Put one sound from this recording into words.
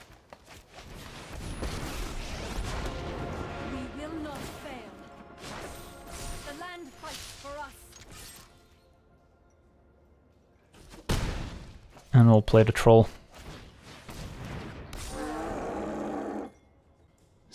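Magical game sound effects whoosh and chime as cards are played.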